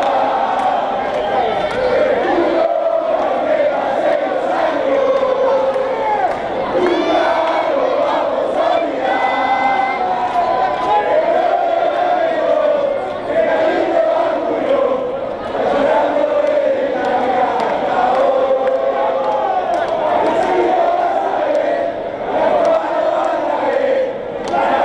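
A large crowd of men and women sings loudly together, close by, under an echoing roof.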